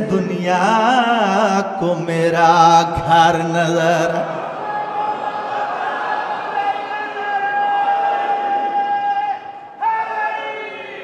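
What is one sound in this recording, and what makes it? A man recites with passion through a microphone, his voice rising and falling in long, drawn-out notes.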